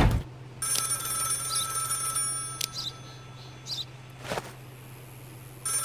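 Items click as they are moved about.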